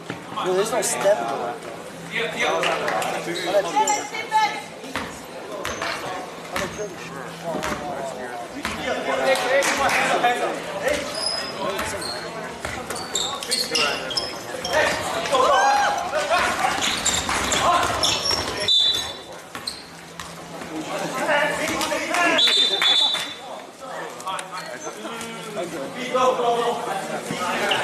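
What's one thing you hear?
Spectators nearby talk and cheer in a large echoing gym.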